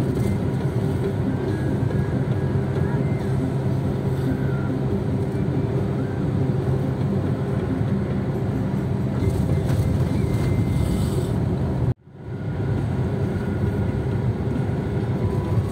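A car rumbles steadily along a road, heard from inside.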